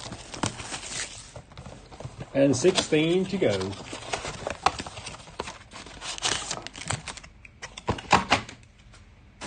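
Cardboard boxes are torn open.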